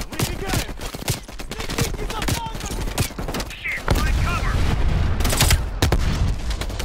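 Gunshots crack in quick, repeated bursts.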